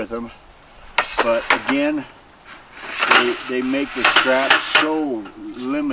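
Metal table slats clatter and rattle as they are unrolled.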